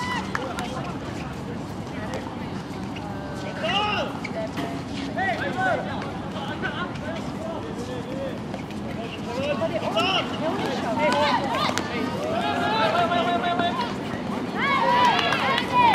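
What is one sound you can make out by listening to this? A ball bounces on the hard court.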